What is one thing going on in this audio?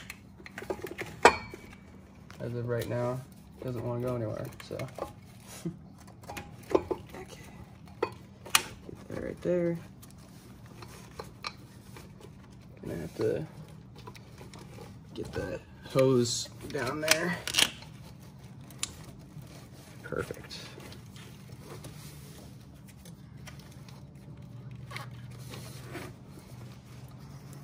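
Small metal parts click and knock as they are handled.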